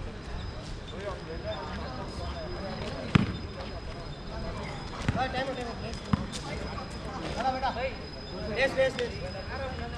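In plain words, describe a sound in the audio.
Young men call out to each other during a game outdoors.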